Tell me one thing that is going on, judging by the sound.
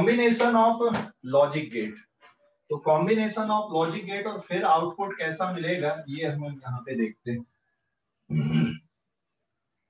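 A man explains calmly close to a microphone.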